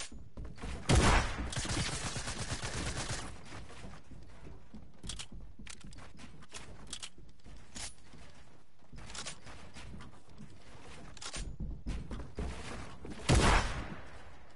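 A shotgun fires with a loud blast.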